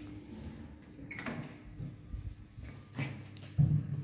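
An elevator door slides open with a rumble.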